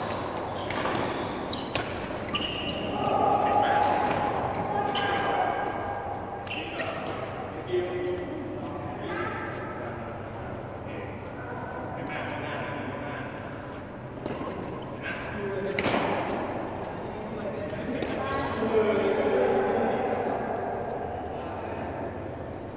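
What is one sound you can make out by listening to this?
Badminton rackets strike a shuttlecock with sharp pops in a large echoing hall.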